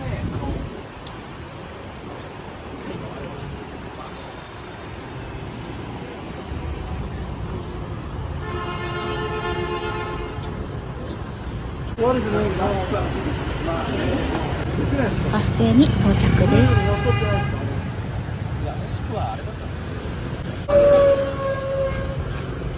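Traffic hums steadily outdoors.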